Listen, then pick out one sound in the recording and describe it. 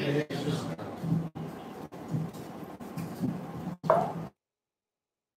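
A young man speaks calmly into a microphone, heard through a loudspeaker in a room.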